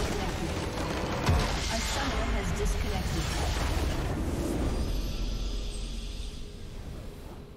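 A large structure bursts apart with a deep, rumbling boom.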